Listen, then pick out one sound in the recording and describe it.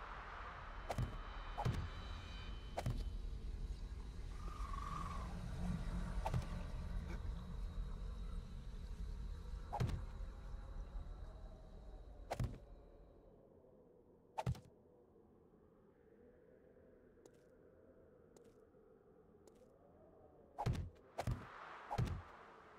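Blocks thud into place one after another, with short sharp knocks.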